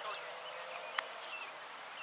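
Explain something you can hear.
A ball is kicked with a sharp thud.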